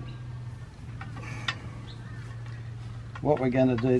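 A metal pole clicks as it is handled.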